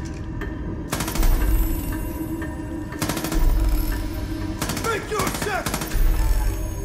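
A rifle fires bursts of loud shots.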